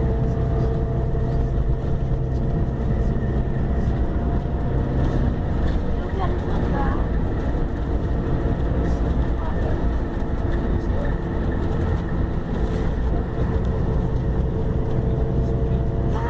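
Tyres rumble on the road beneath a moving bus.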